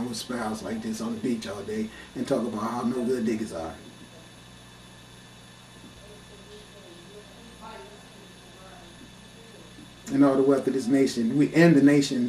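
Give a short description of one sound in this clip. A man speaks loudly and animatedly, very close by.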